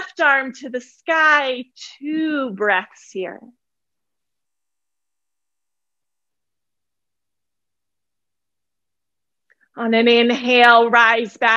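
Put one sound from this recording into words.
A woman speaks calmly and clearly into a close microphone, pausing for a while in between.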